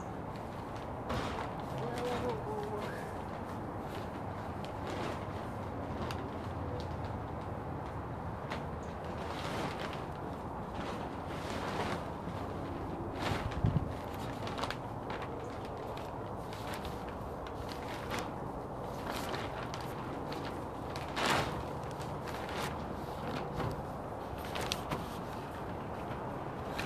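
Plastic sheeting crinkles and rustles as a man moves across it.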